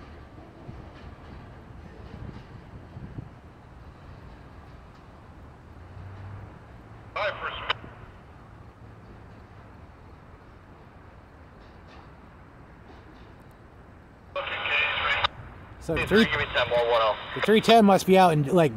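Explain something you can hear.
A freight train rumbles slowly along the tracks in the distance.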